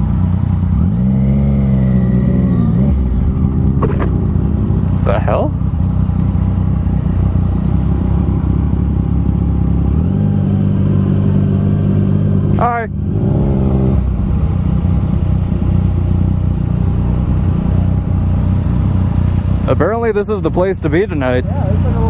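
A motorcycle engine rumbles steadily up close, revving now and then.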